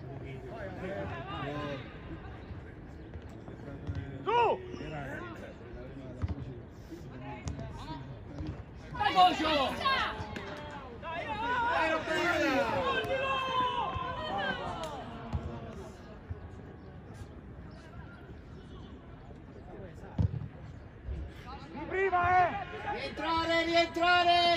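Young players shout to each other across an outdoor pitch.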